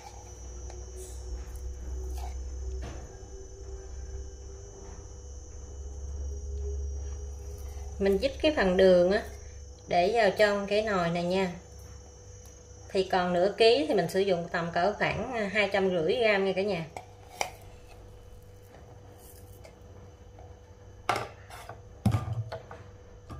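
A metal spoon scrapes and clinks against a jar and a pot.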